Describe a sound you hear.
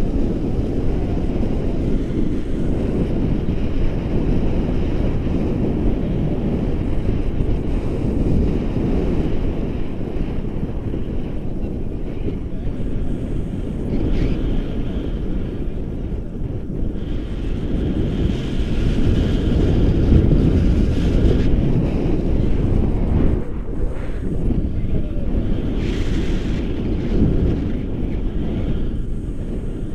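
Strong wind rushes and buffets against a microphone throughout.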